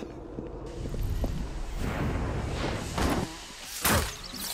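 A smoke bomb bursts with a loud hissing rush.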